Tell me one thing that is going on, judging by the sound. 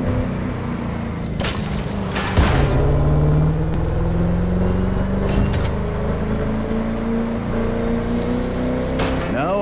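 Tyres crunch over gravel and grass.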